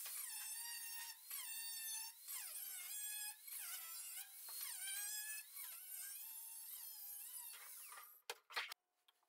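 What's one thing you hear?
An angle grinder whines as it cuts metal.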